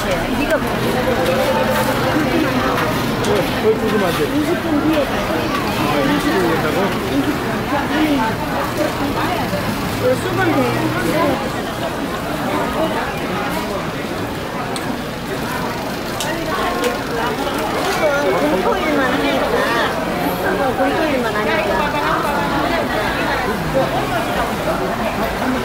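Pancakes sizzle in hot oil on a griddle.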